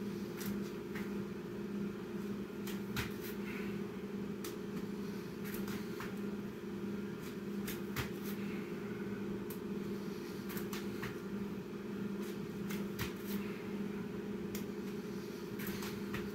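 Hands and feet thump on a mat in a quick, repeated rhythm.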